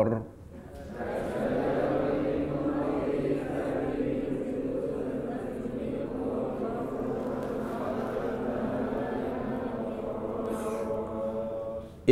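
A large group of men recite together in a low murmuring chorus.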